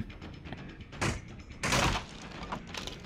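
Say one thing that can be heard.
Wooden planks crash and splinter as a barrier is smashed.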